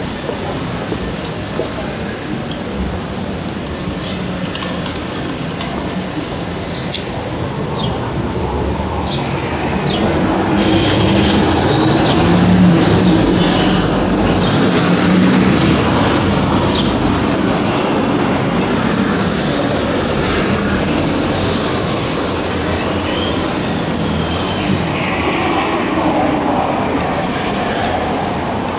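Traffic rumbles along a busy street outdoors.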